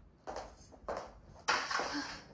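Heels click on a hard floor.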